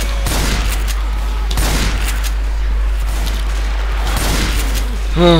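A gun fires in sharp blasts.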